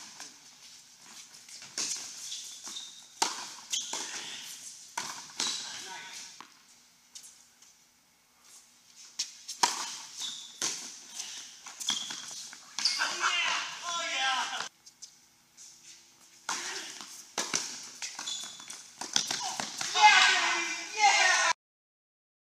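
Tennis balls are struck sharply with rackets and bounce in a large echoing hall.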